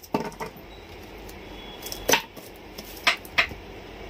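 Hands tap and press on a cardboard box.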